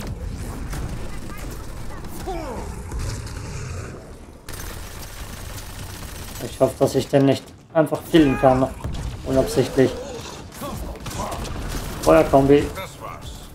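Energy blasts whoosh and crackle in a fight.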